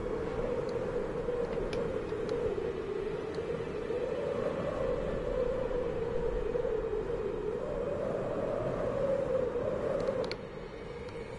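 Wind howls steadily, rising and falling.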